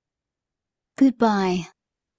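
A short bright chime sounds.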